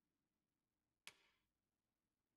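A soft menu click sounds once.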